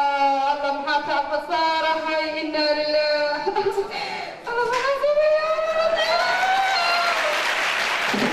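A young woman sings through a microphone.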